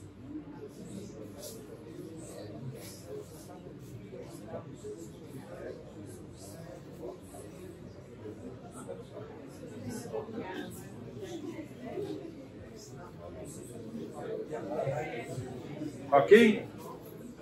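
A middle-aged man lectures calmly in a room with a slight echo.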